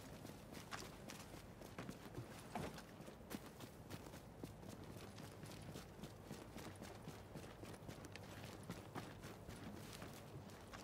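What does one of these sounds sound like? Footsteps crunch quickly over snow and debris.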